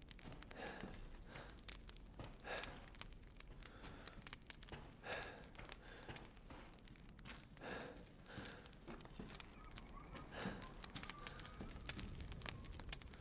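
A fire crackles and pops in a fireplace.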